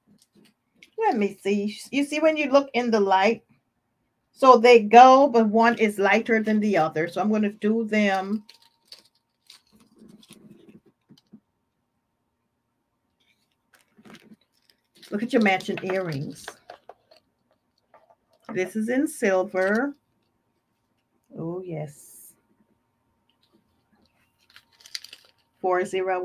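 A woman speaks calmly and clearly into a close microphone, in pauses.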